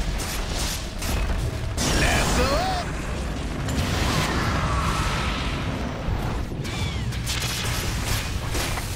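Fantasy battle sound effects crackle and whoosh as spells and weapons clash.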